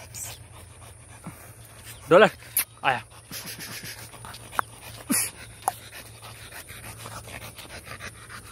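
A dog pants heavily.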